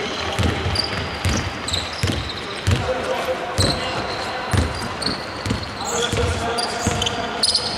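A basketball bounces with dull thumps in a large echoing hall.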